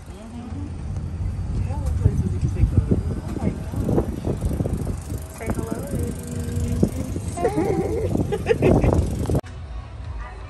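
A cart motor hums and rumbles while driving.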